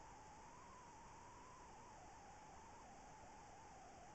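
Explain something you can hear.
A small motor whirs steadily with a wavering hum.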